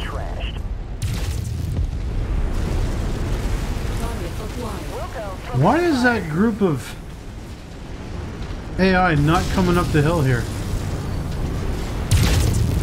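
Laser weapons fire with sharp zapping bursts.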